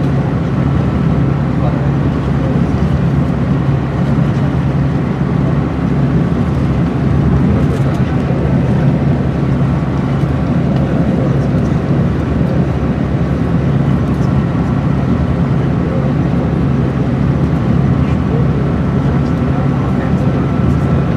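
A bus engine hums steadily from inside while driving.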